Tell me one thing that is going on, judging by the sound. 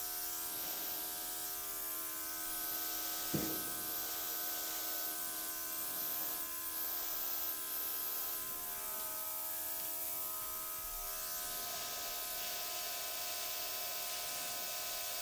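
A small gas torch hisses steadily.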